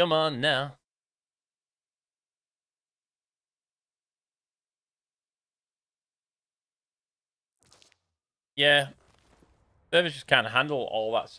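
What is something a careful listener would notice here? A man speaks with animation into a close microphone, in short bursts.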